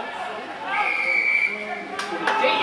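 A referee's whistle blows once.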